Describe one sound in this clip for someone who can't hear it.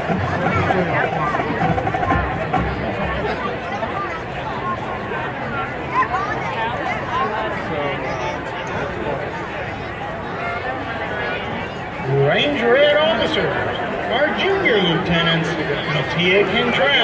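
A large crowd chatters nearby outdoors.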